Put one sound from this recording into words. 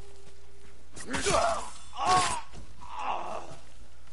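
A sword slashes with a sharp metallic swish.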